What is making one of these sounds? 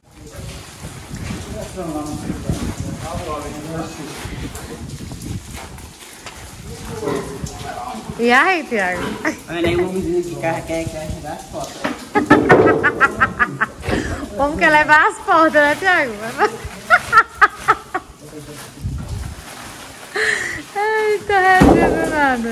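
Grain rustles and pours into a sack.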